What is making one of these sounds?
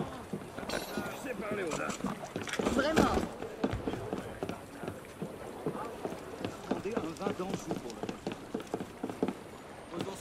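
Footsteps thud quickly across wooden planks.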